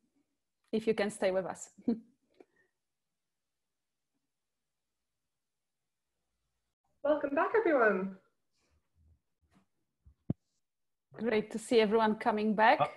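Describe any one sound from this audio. Several women speak in turn, with animation, over an online call.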